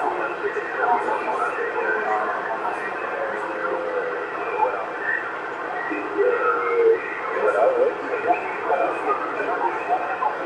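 A radio receiver crackles with static and garbled, distorted transmissions.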